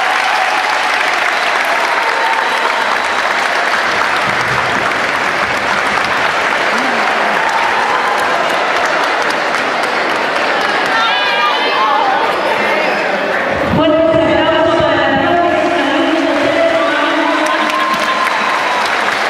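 A crowd of girls cheers loudly.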